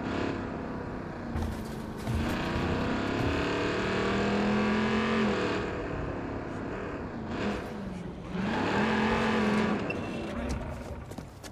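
A pickup truck's engine rumbles and revs as it drives.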